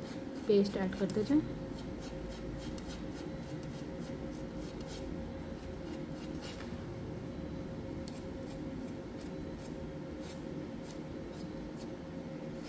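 A palette knife scrapes and taps softly through thick paste.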